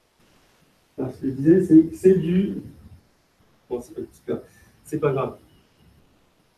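A man speaks through a microphone in a large echoing room.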